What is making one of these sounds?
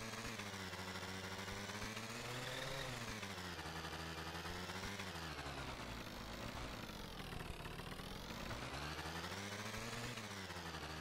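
A motorcycle engine drones steadily, its pitch rising as it speeds up, dropping as it slows, then rising again.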